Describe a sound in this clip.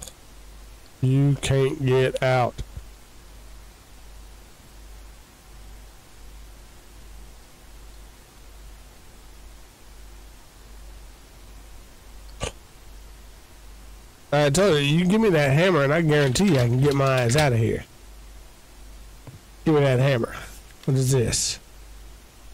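A man talks into a close microphone.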